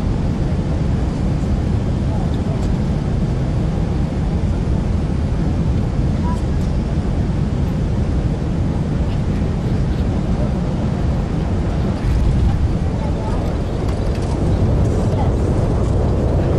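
Tyres rumble over a runway.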